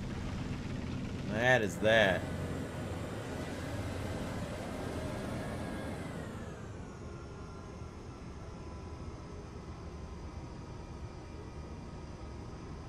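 A tank engine rumbles steadily and winds down.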